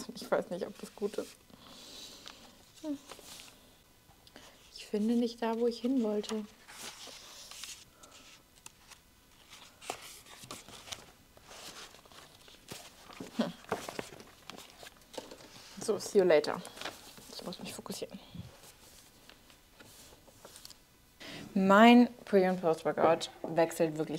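A young woman talks calmly and closely into a microphone.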